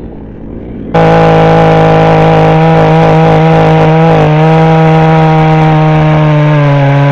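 A chainsaw roars loudly close by, cutting into wood.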